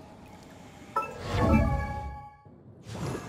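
A bright magical chime rings out.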